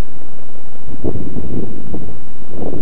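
A model plane bumps and scrapes along grass as it lands.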